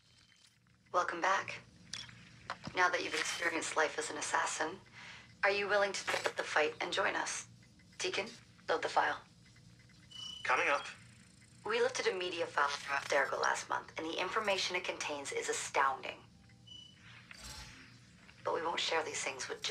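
A young woman speaks calmly and warmly, close by.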